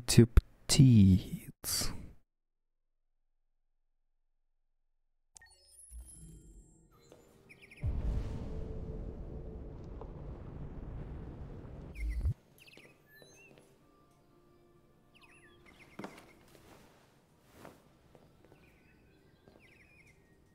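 Footsteps tap on a hard tiled floor.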